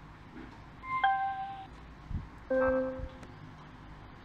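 A small speaker plays short electronic chimes and tones.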